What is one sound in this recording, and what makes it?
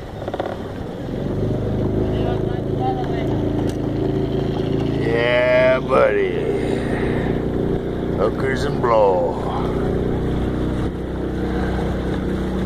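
A boat's motor drones steadily close by.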